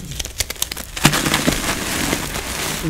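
Fine powdery dust and grit trickle and rustle down from hands.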